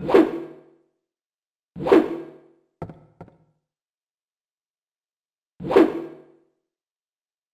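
A metal pipe strikes a body with heavy thuds.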